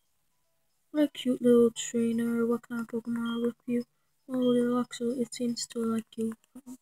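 A handheld game console plays electronic game music.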